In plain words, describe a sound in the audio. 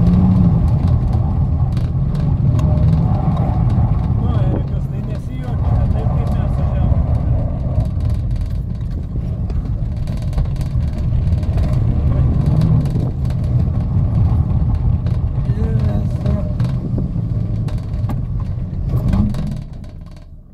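A car engine roars as the car drives in tight turns.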